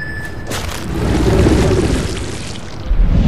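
A heavy, wet crunching burst sounds.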